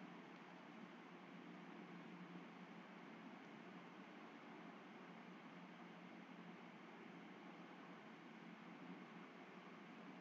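Playing cards rustle and slide against each other as they are handled.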